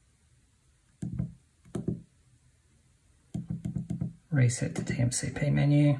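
Fingers click the buttons of a calculator.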